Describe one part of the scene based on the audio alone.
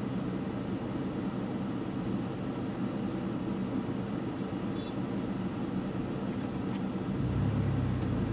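Traffic hums nearby on a street.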